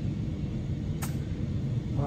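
A golf club strikes a ball with a short click.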